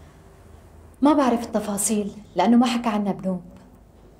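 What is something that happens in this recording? A young woman answers calmly close by.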